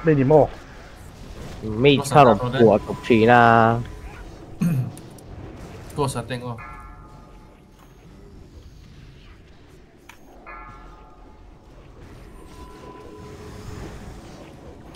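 Game spell effects crackle and chime.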